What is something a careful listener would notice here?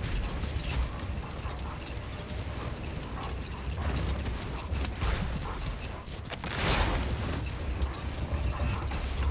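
A sled scrapes and slides over snow.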